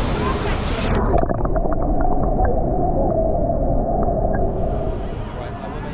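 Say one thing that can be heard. Water gurgles and bubbles underwater, heard muffled.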